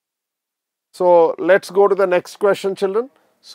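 A middle-aged man speaks calmly into a clip-on microphone.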